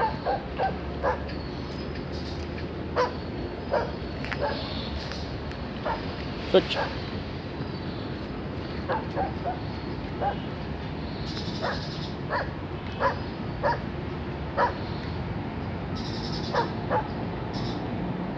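A dog sniffs along the ground.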